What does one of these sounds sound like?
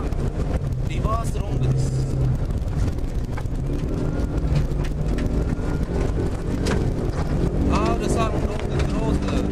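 A car engine roars and revs hard, heard from inside the car.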